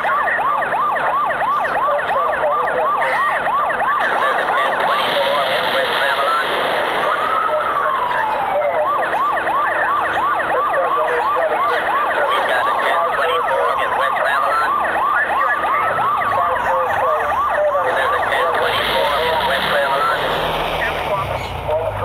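Police sirens wail rapidly and continuously close by.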